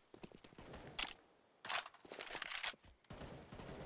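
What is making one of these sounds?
A rifle is reloaded with a magazine clicking into place.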